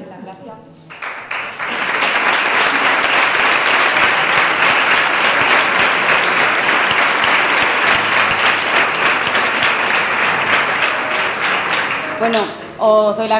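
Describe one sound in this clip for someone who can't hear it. Applause rises and fills a room.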